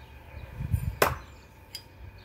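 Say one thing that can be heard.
A thrown blade thuds sharply into a wooden target.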